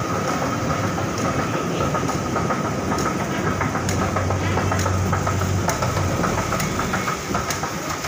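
An escalator rumbles and hums steadily.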